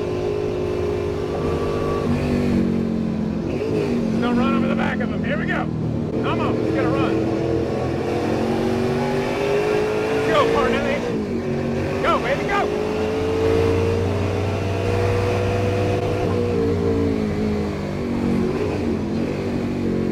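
A racing car's engine roars loudly from inside the cabin, rising and falling as it shifts gears.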